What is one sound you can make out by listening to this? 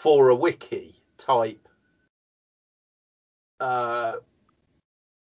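A middle-aged man speaks with animation over an online call, with gaps between phrases.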